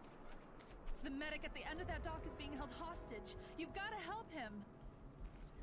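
A woman speaks urgently and pleads.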